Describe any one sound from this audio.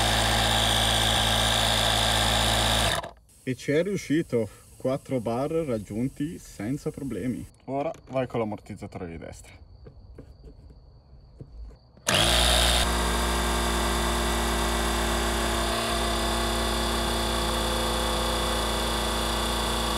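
An air compressor motor hums loudly and steadily.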